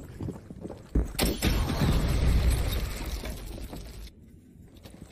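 A loud explosion booms.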